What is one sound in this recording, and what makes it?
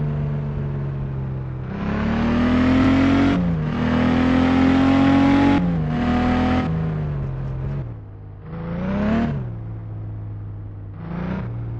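A car engine hums and revs up and down repeatedly.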